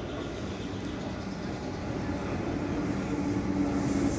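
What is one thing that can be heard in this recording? A train rumbles in the distance and grows louder as it approaches.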